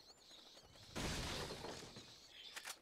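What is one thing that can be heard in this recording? A wooden barrel smashes apart with a splintering crack.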